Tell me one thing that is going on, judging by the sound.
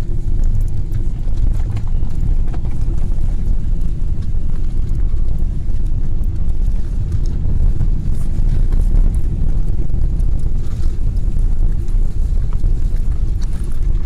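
Aircraft wheels rumble over the runway.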